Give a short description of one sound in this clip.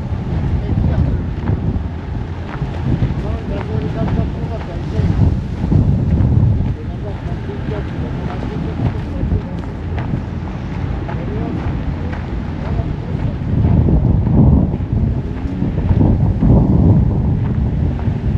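Wind blows and rumbles steadily outdoors, gusting louder at times.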